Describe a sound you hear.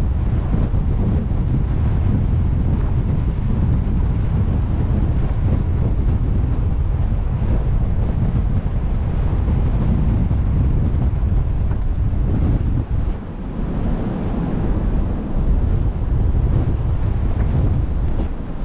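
Waves wash against a ship's hull.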